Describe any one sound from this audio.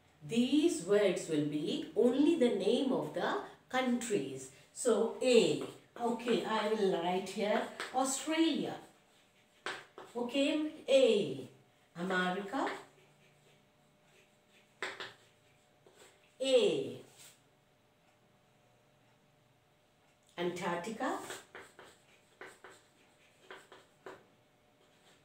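A middle-aged woman speaks calmly and clearly, close by, as if teaching.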